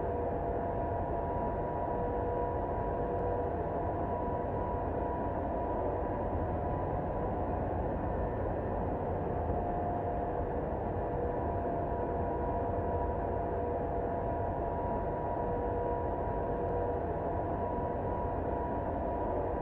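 Jet engines drone steadily with a low, even rumble and a faint whine.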